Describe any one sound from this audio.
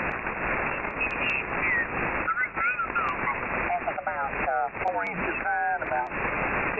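A radio receiver gives out warbling, gliding whistles.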